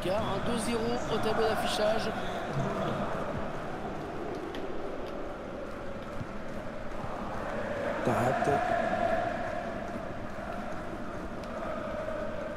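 A large stadium crowd roars steadily, swelling louder at times.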